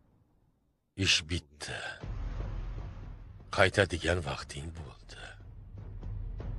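A middle-aged man speaks on a phone.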